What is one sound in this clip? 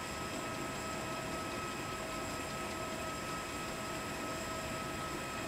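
A jet engine idles with a steady, high whine and a low rumble.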